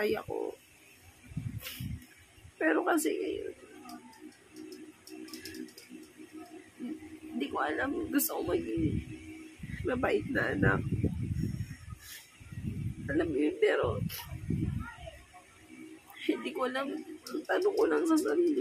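A woman speaks tearfully up close, her voice breaking as she cries.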